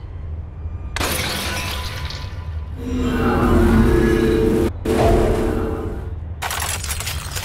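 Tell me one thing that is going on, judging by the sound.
A magical whoosh swells into a deep rumble and fades away.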